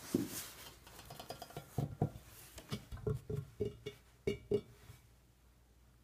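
Fingernails tap on hard plastic.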